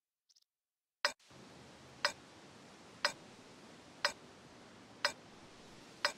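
A countdown timer beeps sharply once every second.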